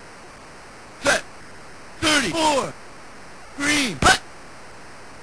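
Game players' voices call out signals in short, electronic bursts.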